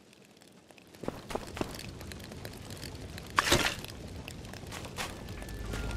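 A campfire crackles and roars nearby.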